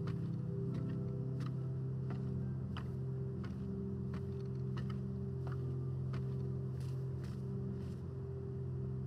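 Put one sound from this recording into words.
Footsteps knock on wooden ladder rungs in a quick, uneven rhythm.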